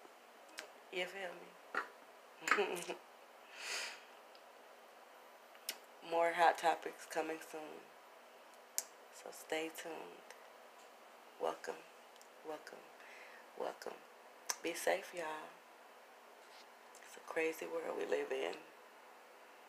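A woman speaks close to a phone microphone in short, calm bursts with pauses.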